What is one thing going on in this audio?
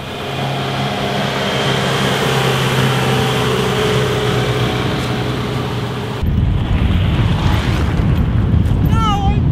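Tyres roll on a rough road.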